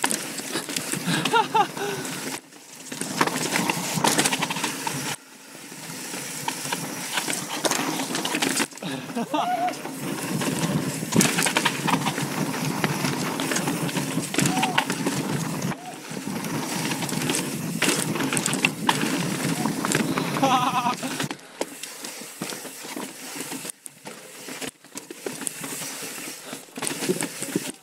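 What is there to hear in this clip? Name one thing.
Bicycle parts clatter and knock over bumps.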